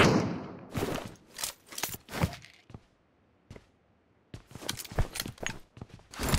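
Footsteps thud up concrete stairs.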